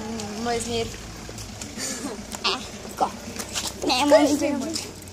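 A boy speaks close by in a lively voice.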